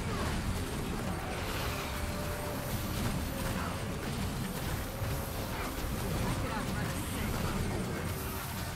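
Magic spells crackle and whoosh in a busy battle.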